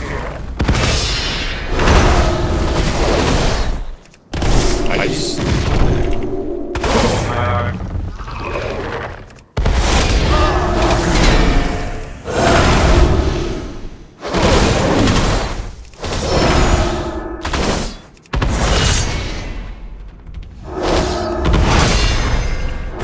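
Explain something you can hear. Weapons clash and thud in a fight with a large creature.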